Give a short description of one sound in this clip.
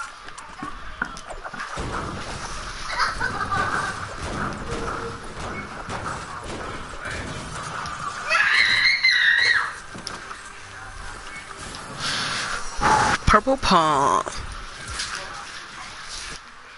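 Footsteps run across hard ground and wooden floors.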